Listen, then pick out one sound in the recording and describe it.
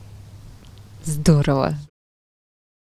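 A woman speaks into a microphone close up.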